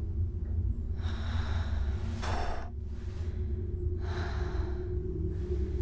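A young woman breathes slowly and deeply close by.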